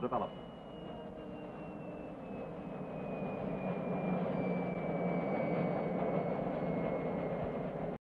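A jet engine whines and roars steadily, its high whine slowly dropping in pitch.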